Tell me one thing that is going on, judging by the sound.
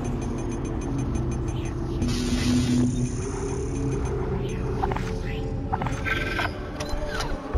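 Short electronic beeps chirp as menu items are selected.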